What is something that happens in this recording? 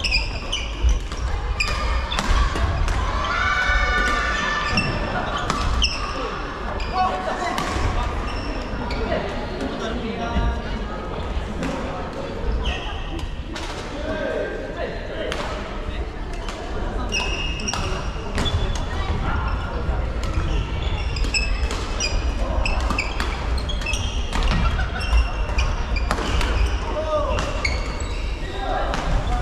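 Badminton rackets strike shuttlecocks with sharp pops in a large echoing hall.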